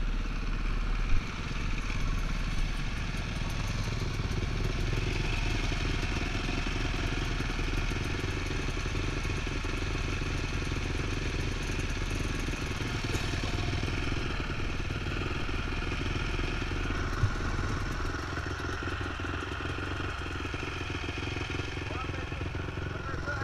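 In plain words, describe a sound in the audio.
A dirt bike engine runs steadily up close.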